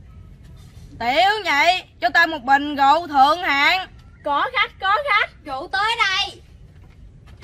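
A young girl speaks with animation close by.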